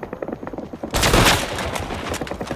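A rifle fires a loud shot that echoes off stone walls.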